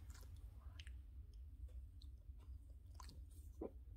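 A Boston terrier licks its lips with wet smacking sounds.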